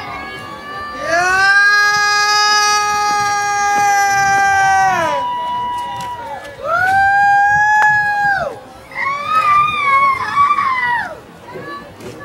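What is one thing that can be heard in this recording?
Young men shout loudly outdoors across a playing field.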